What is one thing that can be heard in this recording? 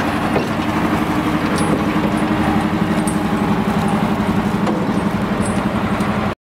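Tyres crunch over a dirt track.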